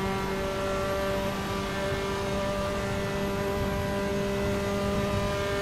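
Tyres rumble over the track.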